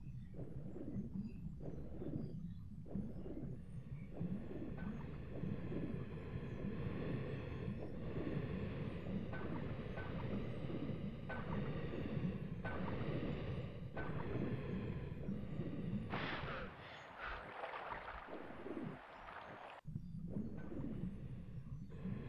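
Water churns and rumbles deep underwater.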